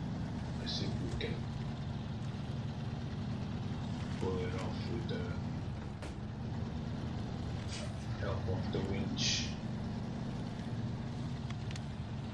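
A truck engine rumbles low and steady as it drives along.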